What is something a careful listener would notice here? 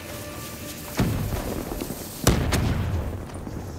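An explosion booms loudly nearby.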